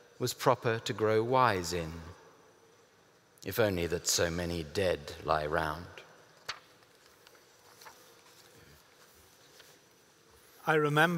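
A middle-aged man reads aloud calmly into a microphone, with pauses.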